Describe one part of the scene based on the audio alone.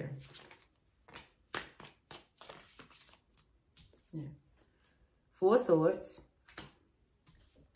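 Playing cards riffle and shuffle.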